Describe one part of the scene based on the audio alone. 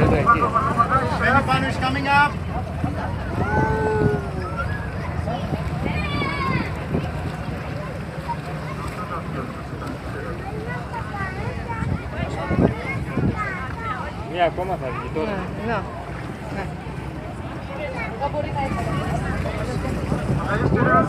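Water splashes and laps against a boat's hull.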